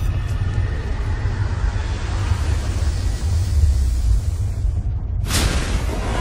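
A large explosion booms with a deep rumble.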